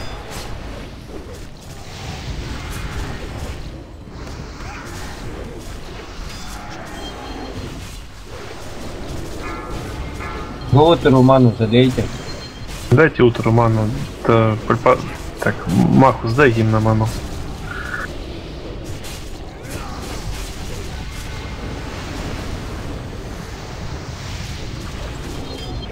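Game spells and weapon blows clash and crackle in a busy battle.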